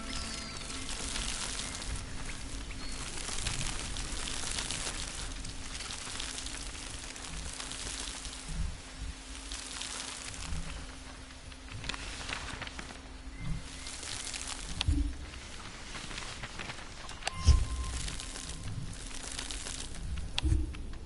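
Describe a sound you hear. Soft footsteps patter across a papery floor.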